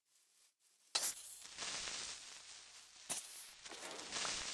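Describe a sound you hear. A loud hissing sound builds up nearby.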